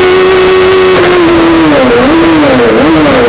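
The race car engine's pitch drops and rises as the driver brakes and accelerates.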